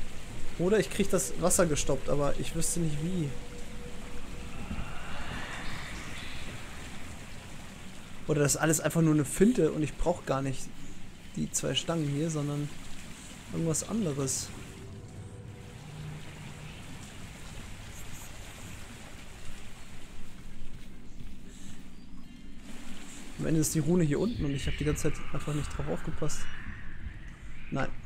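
A man talks casually and close to a microphone.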